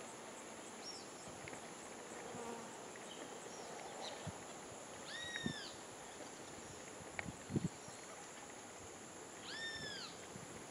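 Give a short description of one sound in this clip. A water bird gives short, rising and falling squawking calls nearby.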